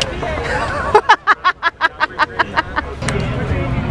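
A young woman laughs loudly and close by.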